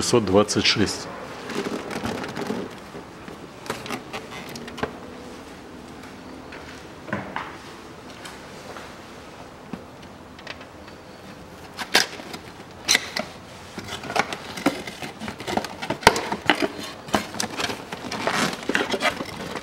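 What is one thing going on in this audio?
A cardboard box rustles and taps as it is handled.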